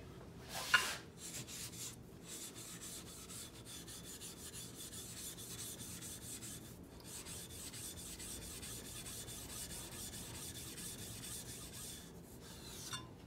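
A sharpening stone scrapes back and forth across another stone in a steady rasp.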